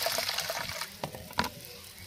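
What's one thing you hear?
A hand swishes through water in a bowl.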